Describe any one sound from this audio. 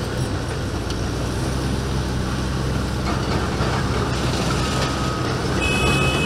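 A heavy excavator engine rumbles steadily.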